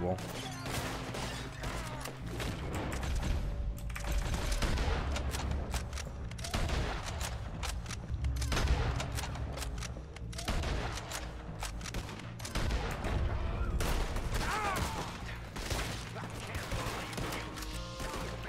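A man's voice speaks gruffly in the game.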